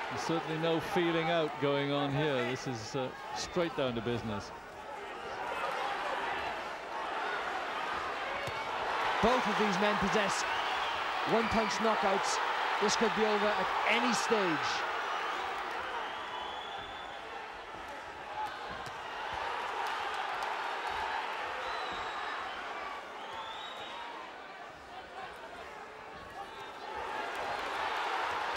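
A crowd cheers and murmurs in a large hall.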